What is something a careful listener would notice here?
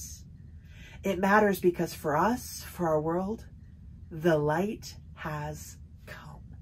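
A woman speaks animatedly and expressively close to a microphone.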